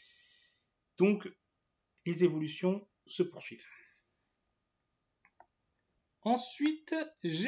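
A young man speaks calmly and close to a microphone, in short phrases.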